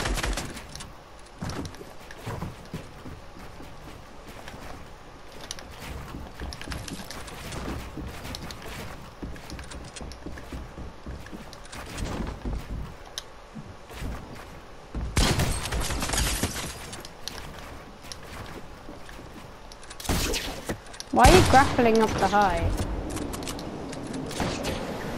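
Game building pieces snap into place with quick, rapid clacks.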